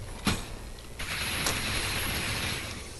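A futuristic weapon hums and crackles with charging energy.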